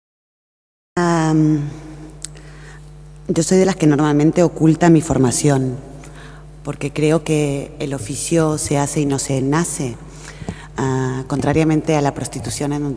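A woman speaks with animation into a microphone, heard through a loudspeaker in a large echoing hall.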